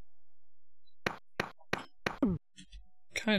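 Quick footsteps thud in a video game.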